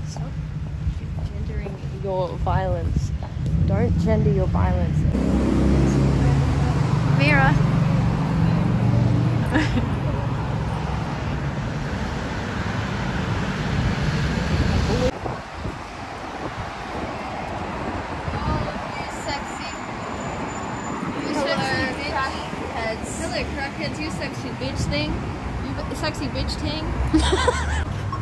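Traffic hums along a street outdoors.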